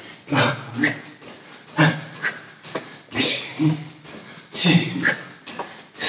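An elderly man speaks with animation, close by, in short bursts.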